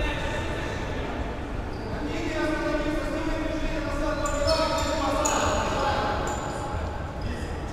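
Young players shout to each other across an echoing hall.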